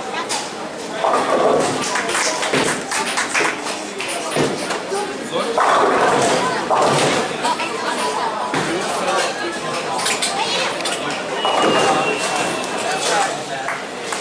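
Pins clatter as a ball strikes them.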